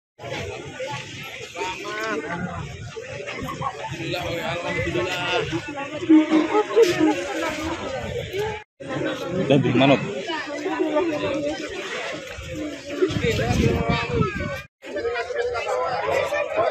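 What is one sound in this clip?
A crowd of people murmur in the background outdoors.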